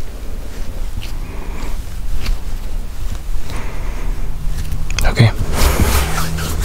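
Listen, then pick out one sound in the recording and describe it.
Hands rub and bump against a microphone close up, with low thumps and rustling.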